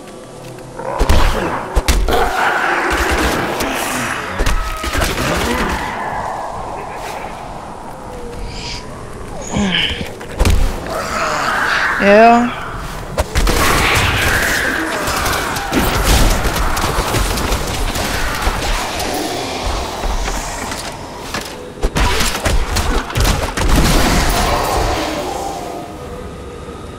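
Fiery spells burst and crackle during a fight.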